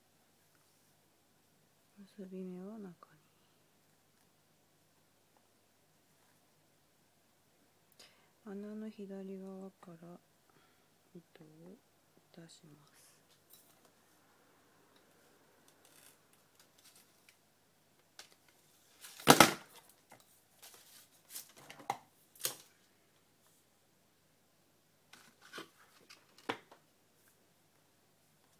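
Cloth rustles and taps as hands handle it up close.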